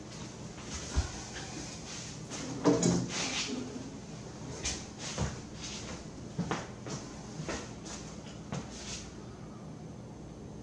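Glass knocks and clinks as it is lifted and set down.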